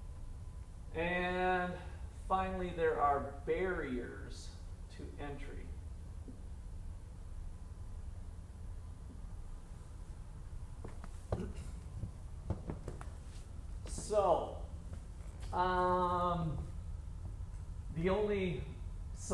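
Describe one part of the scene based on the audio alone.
A man speaks in a lecturing tone, with pauses.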